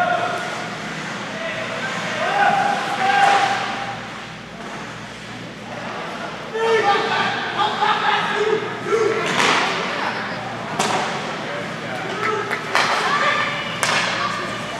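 Spectators nearby talk and call out loudly.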